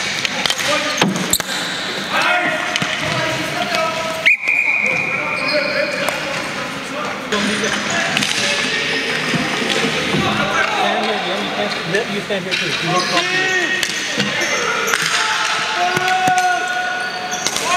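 Young players shout to each other across an echoing hall.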